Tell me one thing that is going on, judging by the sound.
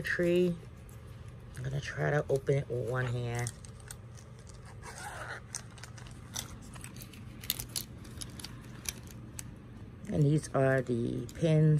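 Things rustle and clatter softly inside a bag.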